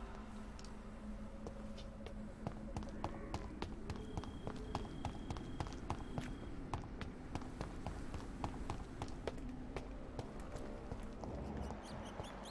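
Quick footsteps run across hard stone.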